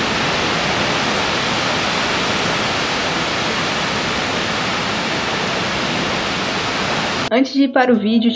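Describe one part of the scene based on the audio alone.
Ocean waves break and roar steadily.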